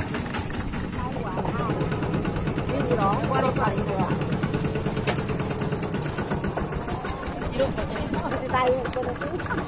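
A small tractor engine chugs loudly up close while riding along.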